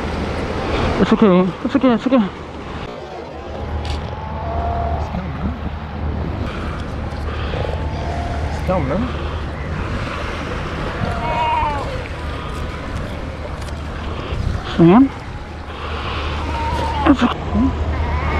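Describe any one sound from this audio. A young seal bleats and barks loudly up close.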